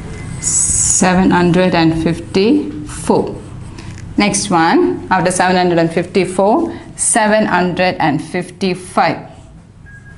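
A woman speaks, explaining.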